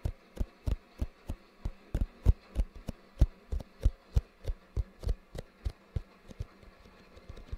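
Fingertips tap on a cardboard box close to a microphone.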